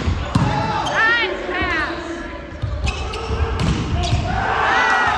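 Players' shoes squeak sharply on a hard court.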